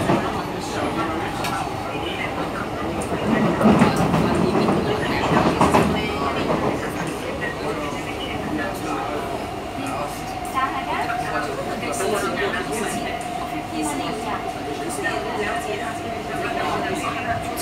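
A train rumbles and rattles steadily.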